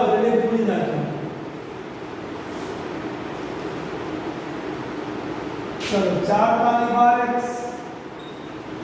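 A middle-aged man speaks calmly, as if explaining.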